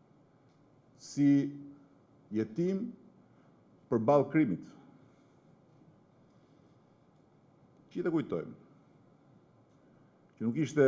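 A middle-aged man speaks slowly and firmly into a microphone, with long pauses.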